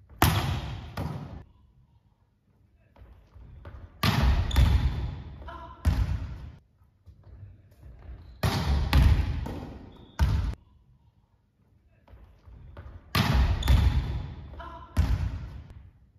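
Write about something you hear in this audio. A volleyball bounces on a wooden floor.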